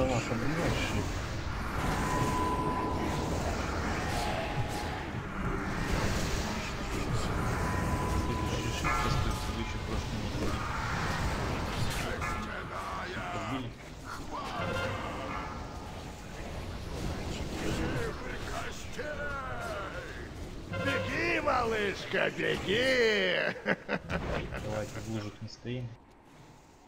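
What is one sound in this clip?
Spells crackle and blast in a game battle.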